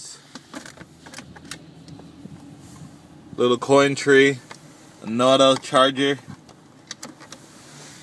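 A gear lever clicks as it is moved.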